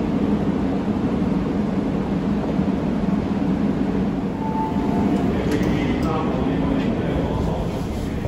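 A train rolls in with a low rumble and slows to a stop.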